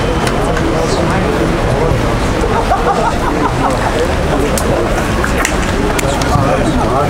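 Men chat nearby.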